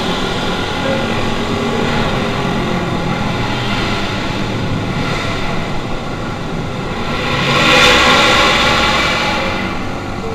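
Motorcycle engines of a group roar and echo through a tunnel.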